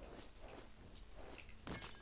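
A weapon swooshes through the air in a fight.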